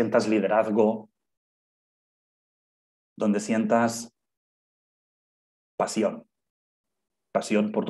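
A man speaks calmly and close to a microphone, in short phrases broken by pauses.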